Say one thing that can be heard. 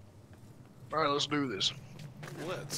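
A man speaks in a gruff, deep voice close by.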